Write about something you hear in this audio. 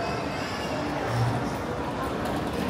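A cart rolls over paving tiles with a low rumble.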